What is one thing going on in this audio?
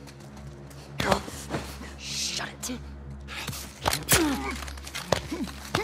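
A sudden scuffle of bodies grappling, with heavy thumps.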